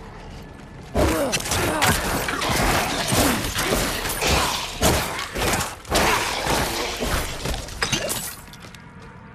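Creatures shriek and growl as they are struck.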